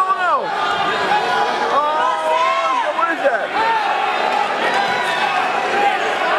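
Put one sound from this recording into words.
Men shout loudly and excitedly in an echoing hall.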